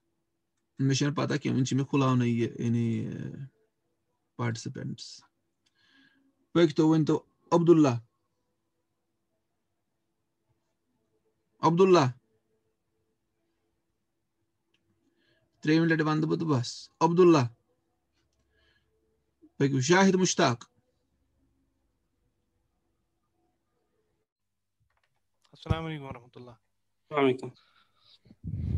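A man speaks calmly into a close microphone in short bursts with long pauses.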